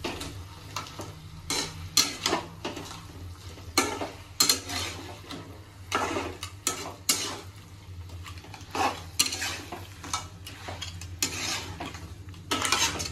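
A metal spatula scrapes and clinks against a pan as food is stirred.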